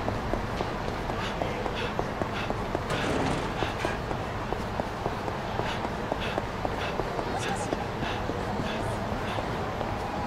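Footsteps patter quickly on pavement.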